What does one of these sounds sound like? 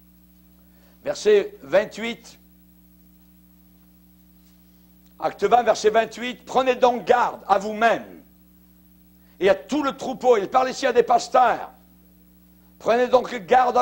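A middle-aged man reads aloud through a microphone, speaking calmly with pauses.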